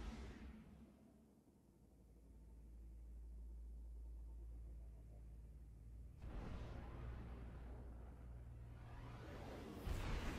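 A spaceship's engines rumble and whoosh as it flies past.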